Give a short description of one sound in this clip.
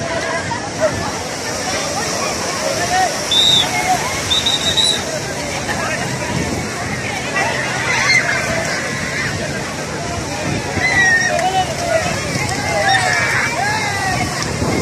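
A crowd of people chatter and shout outdoors.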